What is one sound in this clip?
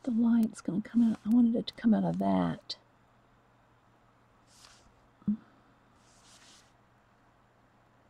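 A paintbrush brushes softly across a hard surface.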